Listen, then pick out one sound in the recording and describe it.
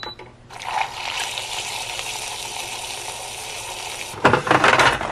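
A milk frother whirs steadily.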